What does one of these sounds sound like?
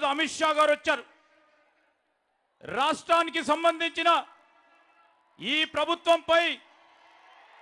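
A man speaks loudly and forcefully through a microphone and loudspeakers, in short bursts.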